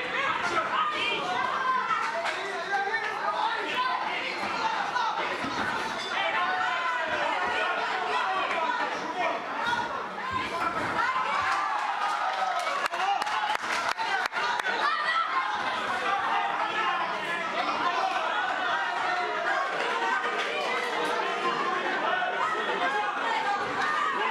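A crowd of spectators chatters and shouts loudly all around.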